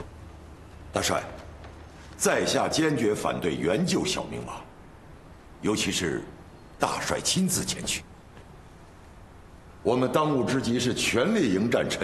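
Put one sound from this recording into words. A middle-aged man speaks forcefully with animation.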